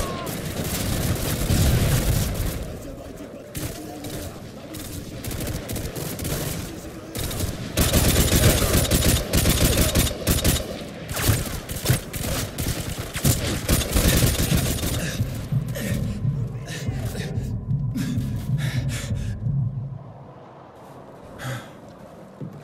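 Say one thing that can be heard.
Rifle gunfire cracks in rapid bursts.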